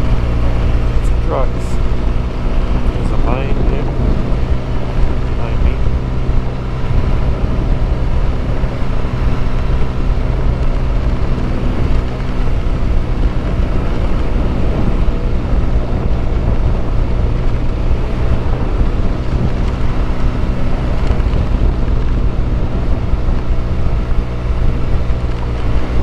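Wind rushes loudly past outdoors.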